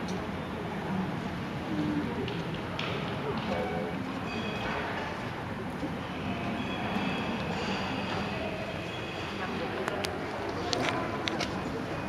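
A jet airliner's engines roar steadily.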